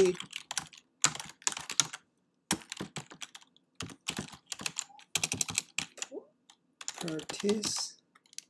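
Keys clatter on a keyboard in quick bursts of typing.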